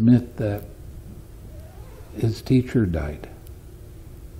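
An elderly man speaks with animation into a nearby microphone.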